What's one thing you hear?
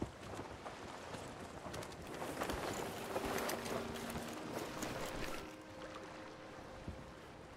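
Rough waves splash and rush against a wooden ship's hull.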